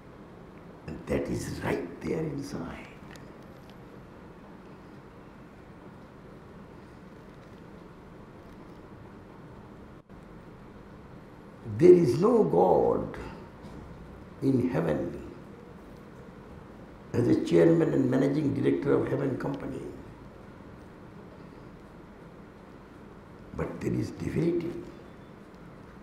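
An elderly man speaks with animation into a microphone, in short bursts with pauses.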